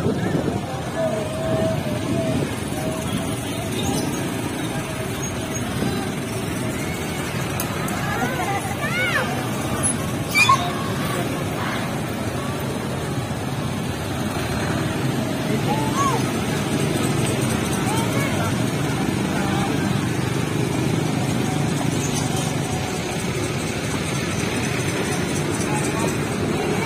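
A crowd of onlookers chatters outdoors along a street.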